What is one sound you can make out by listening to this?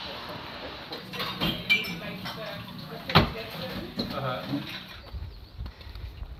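Several adults chat indoors in a small room.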